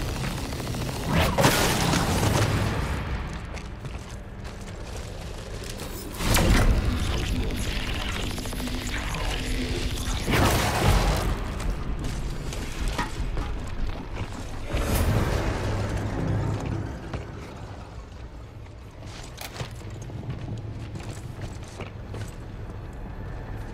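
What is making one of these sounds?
Heavy armoured footsteps thud on a hard floor.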